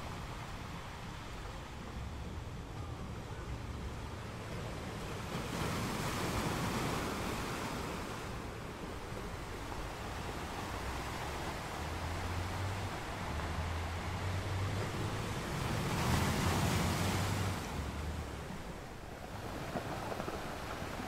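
Foamy water rushes and hisses over rocks.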